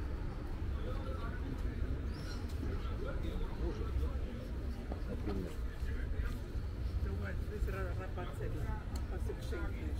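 Adults talk quietly nearby outdoors.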